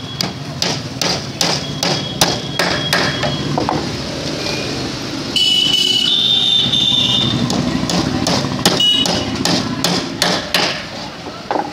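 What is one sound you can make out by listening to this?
A hammer taps on wood in quick, sharp blows.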